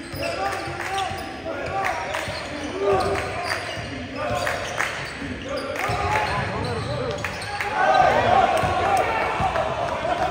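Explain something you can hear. Sneakers squeak sharply on a gym floor.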